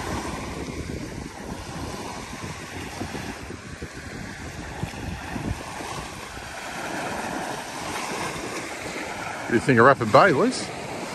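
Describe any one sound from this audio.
Small waves wash gently onto a shingle beach outdoors.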